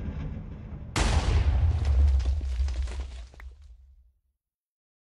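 A loud explosion booms and rumbles away inside a cave.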